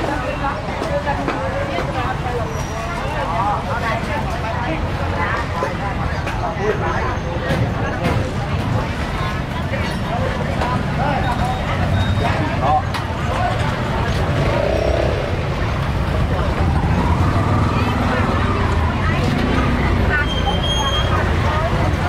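A busy outdoor market crowd chatters all around.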